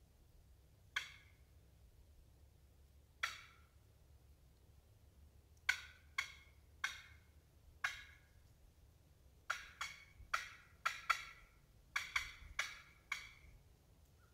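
A man blows short, sharp bursts on a hand-held game call outdoors.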